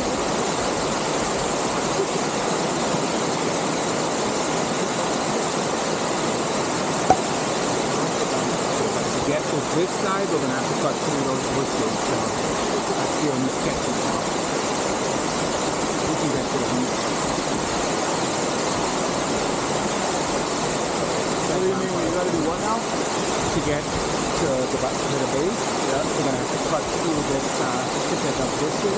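A waterfall rushes steadily over rocks close by.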